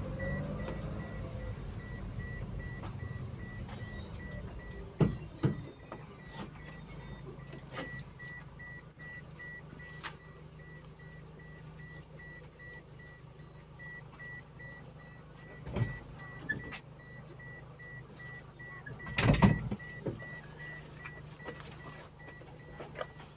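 A vehicle engine hums steadily from inside the cabin.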